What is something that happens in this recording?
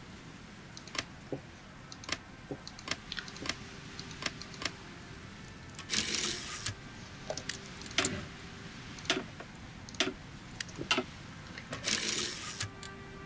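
Short game interface clicks sound as menus open and close.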